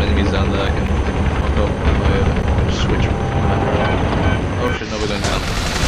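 A helicopter's rotor and engine drone steadily.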